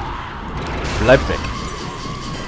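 A blade slashes through the air with a sharp whoosh.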